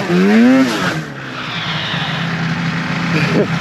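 A snowmobile engine idles low after the stop.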